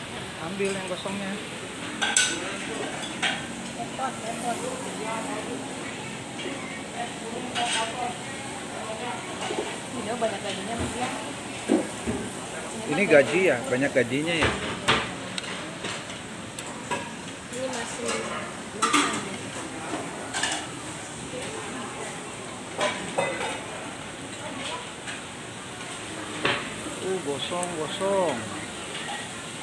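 A woman talks at close range.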